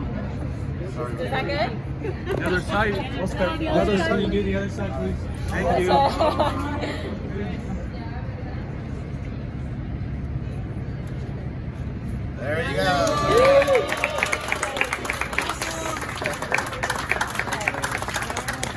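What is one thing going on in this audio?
Several adults talk and chatter nearby.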